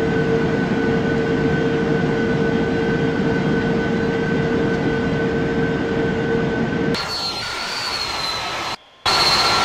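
Jet engines drone steadily with a high whine.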